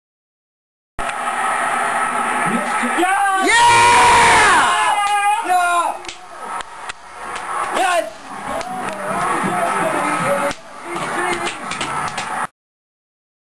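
A small group of people cheers and shouts excitedly.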